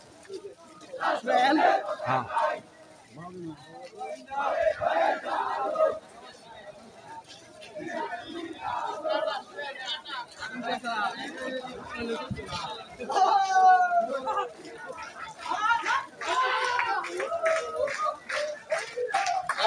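A crowd of men shout slogans in rhythm outdoors.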